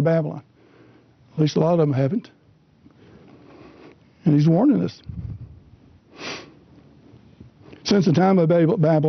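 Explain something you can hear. A middle-aged man speaks calmly and slowly into a microphone, with pauses.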